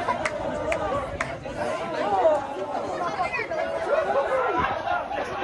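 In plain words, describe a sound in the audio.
A crowd of fans chants and cheers loudly outdoors.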